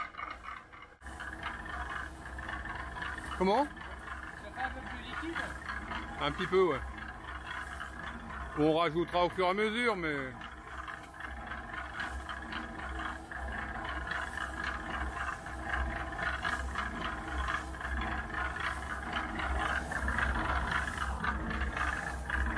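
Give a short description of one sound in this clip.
A concrete mixer runs with a steady, rumbling hum.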